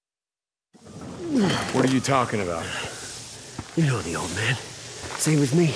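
A young man speaks casually, close by.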